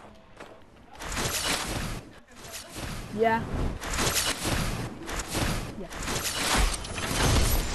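Wind rushes loudly past during a fall through the air.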